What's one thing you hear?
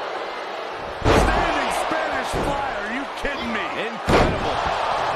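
A heavy body slams onto a wrestling mat with loud thuds.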